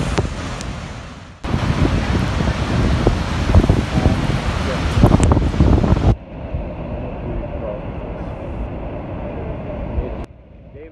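A huge waterfall roars and thunders nearby.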